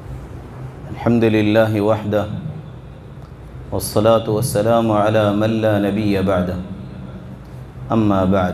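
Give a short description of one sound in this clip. A man speaks into a microphone, heard through a loudspeaker in an echoing room.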